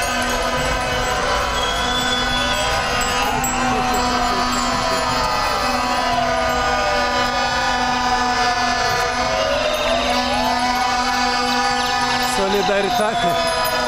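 Sirens wail and rise and fall nearby outdoors.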